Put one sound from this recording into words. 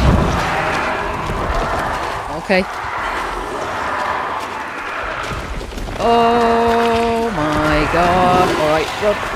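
Footsteps walk slowly over a stone floor.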